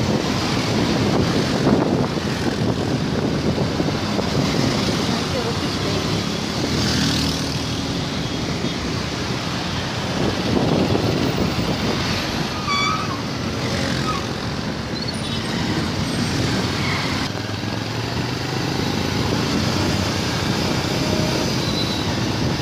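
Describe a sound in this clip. Motorbike engines rumble steadily in busy street traffic.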